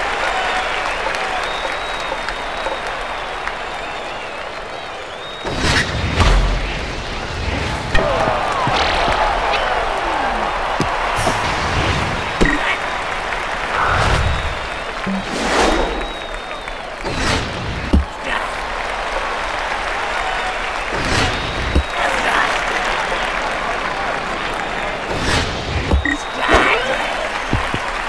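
A crowd murmurs and cheers steadily.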